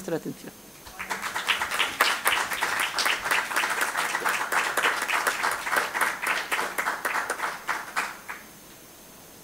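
An audience claps in a large room.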